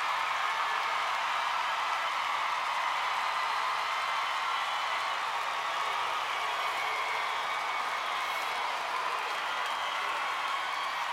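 A large crowd cheers and screams loudly in a big hall.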